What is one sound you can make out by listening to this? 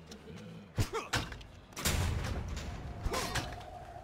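A heavy metal lever clanks as it is pulled.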